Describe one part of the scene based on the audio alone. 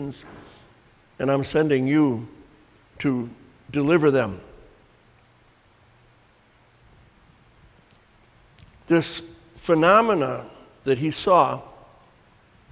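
An elderly man speaks calmly and clearly into a nearby microphone, with pauses.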